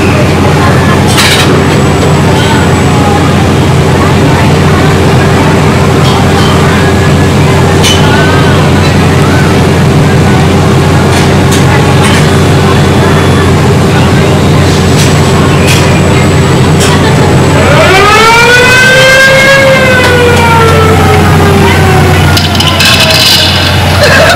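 A ride car rumbles and hums steadily along its track.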